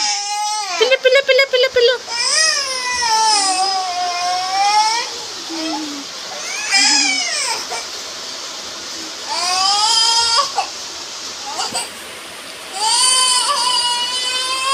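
A young child squeals and coos in a high, sing-song voice close by.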